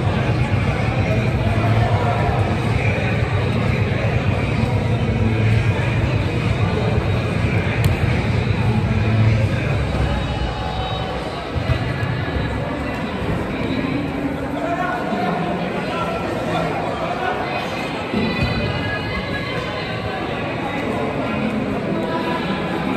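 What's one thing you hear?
Players shout and call out to each other in a large echoing hall.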